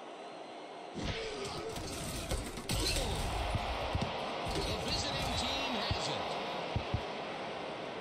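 Football players collide and tackle with heavy thuds.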